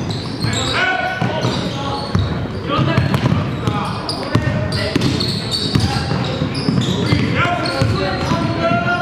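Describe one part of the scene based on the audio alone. A basketball thumps as it is dribbled on the court.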